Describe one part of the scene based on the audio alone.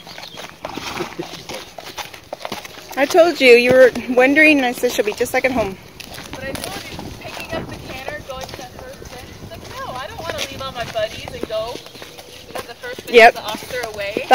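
A horse's hooves thud softly on a dirt track.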